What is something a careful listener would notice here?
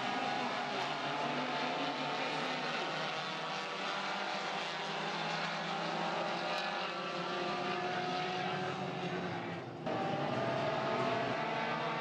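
Race car engines roar and whine as cars speed around a track.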